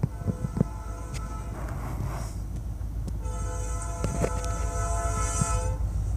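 A diesel train horn blasts loudly, in two long calls.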